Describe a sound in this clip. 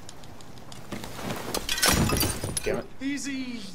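Glass shatters as a man crashes through a window.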